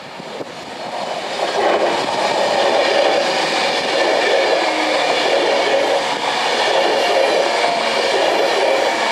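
A train passes close by with a loud rushing roar.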